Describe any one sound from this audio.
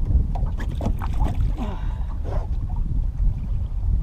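A large fish splashes into water.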